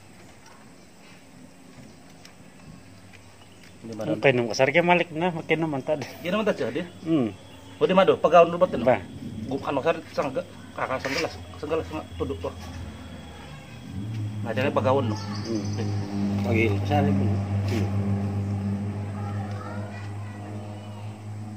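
A plastic bottle crinkles as hands pull wax comb from it.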